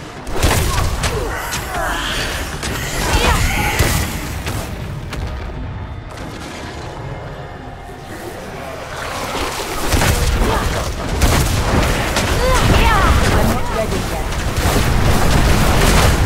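Heavy blows thud and crash in quick succession.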